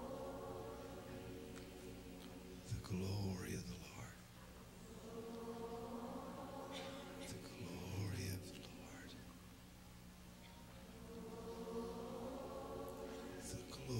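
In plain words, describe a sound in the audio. A large crowd sings together.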